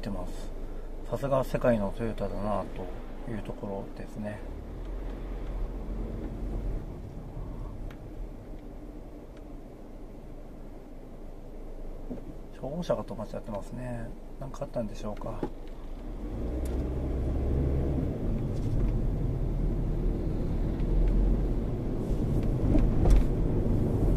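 A car engine hums low and steady, heard from inside the car.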